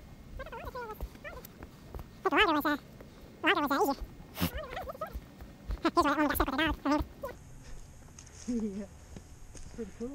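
Footsteps crunch on dry leaves and stones.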